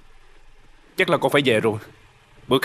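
A young man speaks tensely nearby.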